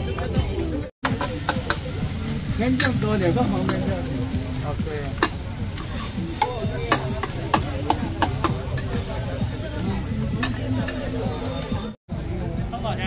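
A metal spatula clinks and scrapes against a large wok.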